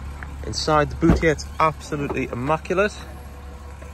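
A car's tailgate clicks open.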